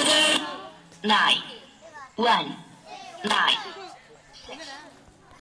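Young boys call out loudly close by.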